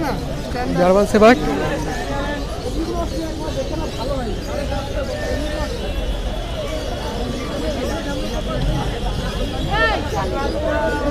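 A puppy whimpers.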